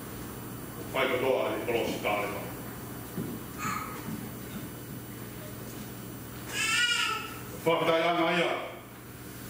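A man speaks calmly into a microphone in an echoing hall.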